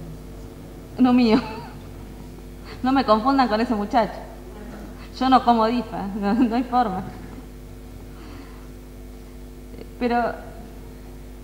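A woman speaks into a microphone in short, lively phrases with pauses.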